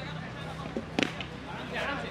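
A cricket bat strikes a ball with a sharp crack.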